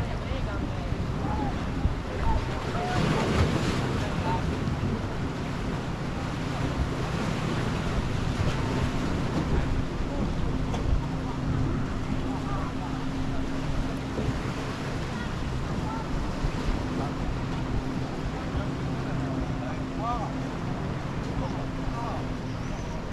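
Wind blows across the shore.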